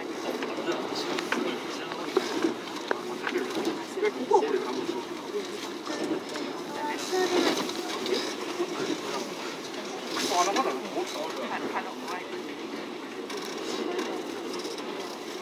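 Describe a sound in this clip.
Train wheels click and clatter over rail joints and points.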